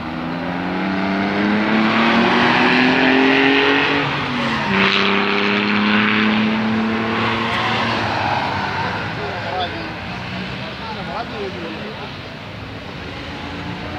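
Vintage cars' engines drone as the cars drive past at speed.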